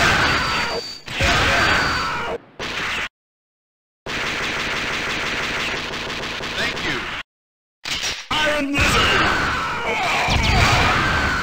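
Rapid video game gunfire rattles.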